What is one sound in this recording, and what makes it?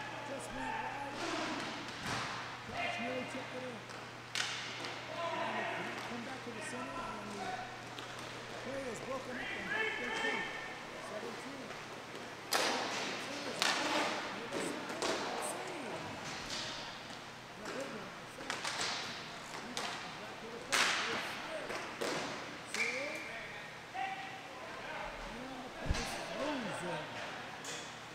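Players call out to each other across a large echoing hall.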